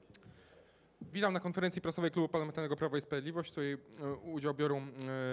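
A man speaks clearly into a microphone in a formal, even voice.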